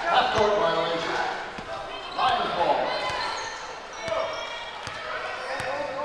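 Young women shout and call out in a large echoing hall.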